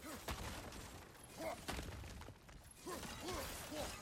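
Wooden crates smash and clatter apart.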